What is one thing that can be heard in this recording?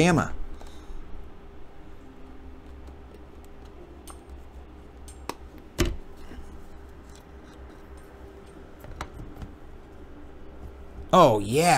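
A small cardboard box rustles and taps as hands open it.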